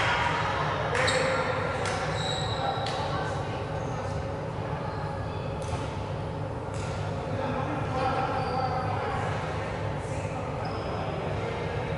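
Shoes squeak sharply on a hard court floor in a large echoing hall.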